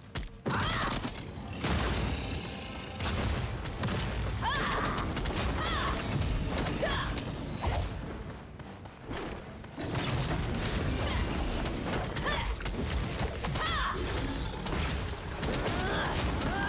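Spell blasts and sword strikes crash and boom in a game battle.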